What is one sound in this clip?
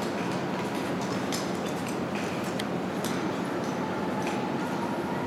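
Ice skate blades scrape rhythmically on ice in a large echoing hall.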